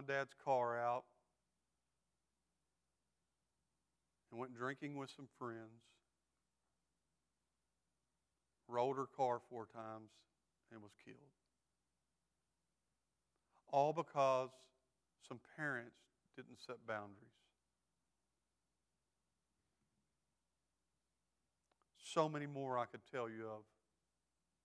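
A middle-aged man speaks calmly through a microphone, with long pauses.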